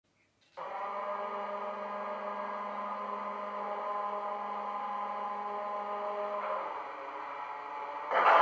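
A diesel engine idles with a steady hum through a small speaker.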